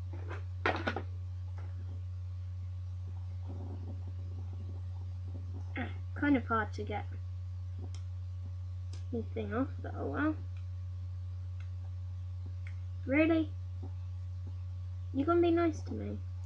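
A young child babbles and vocalizes nearby.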